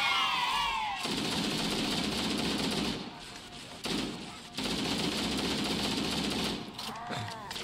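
An automatic rifle fires rapid bursts of gunfire.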